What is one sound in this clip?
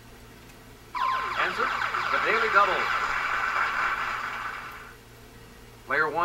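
A game sound effect plays a bright jingle.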